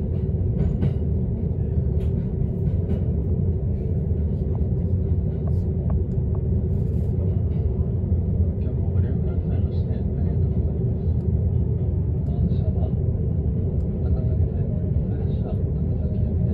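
Raindrops tap lightly on a window.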